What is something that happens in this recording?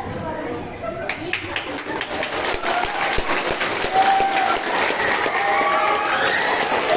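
A crowd of children shouts and cheers in an echoing hall.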